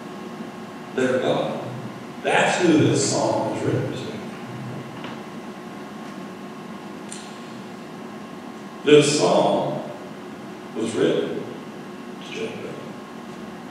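A man speaks calmly and slowly through a microphone in an echoing hall, with long pauses.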